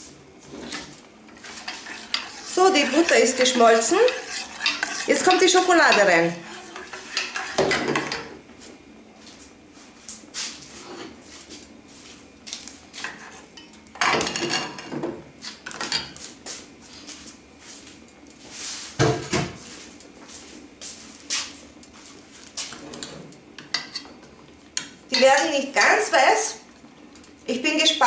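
A spoon scrapes and knocks against a metal pot.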